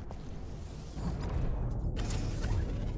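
A spacecraft engine hums and rumbles low.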